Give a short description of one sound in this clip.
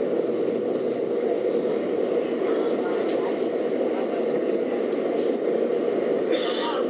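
An electric train rumbles along the track through a tunnel, heard from inside the cab.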